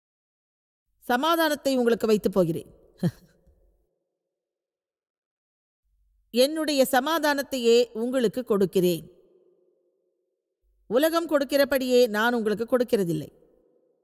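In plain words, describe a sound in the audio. A woman speaks calmly and earnestly through a microphone, in short phrases with pauses.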